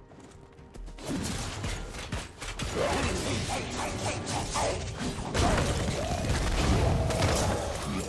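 Magic blasts and sword strikes crackle and burst in a video game battle.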